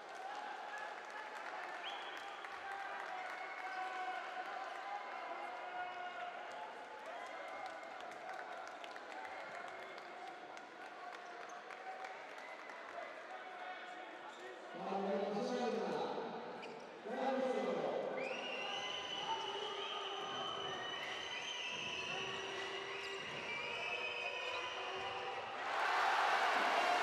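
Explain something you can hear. A crowd chants and sings in a large echoing hall.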